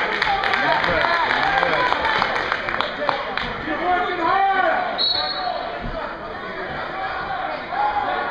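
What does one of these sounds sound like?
A crowd of spectators chatters and shouts in a large echoing gym.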